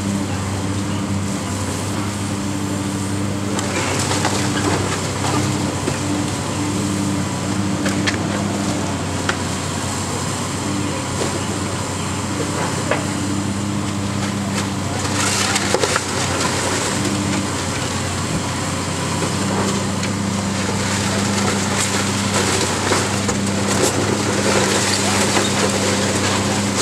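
A heavy excavator engine rumbles steadily.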